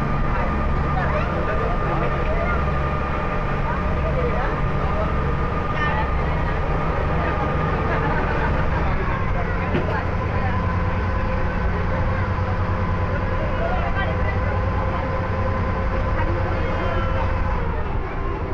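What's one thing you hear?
A ferry engine rumbles steadily.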